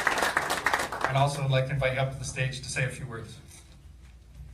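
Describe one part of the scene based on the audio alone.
A man speaks calmly into a microphone in a large room.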